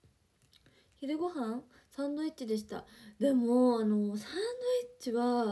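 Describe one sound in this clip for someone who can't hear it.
A young woman talks softly and emotionally, close by.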